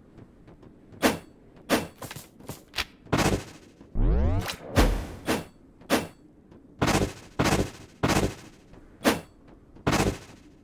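Sharp video game attack effects hit in quick bursts.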